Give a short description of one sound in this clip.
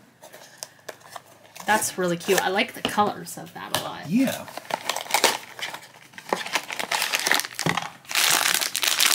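A cardboard box is handled and torn open.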